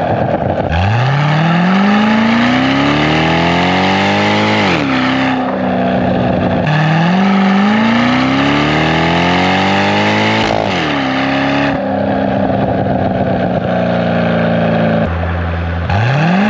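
Wind rushes past loudly at speed.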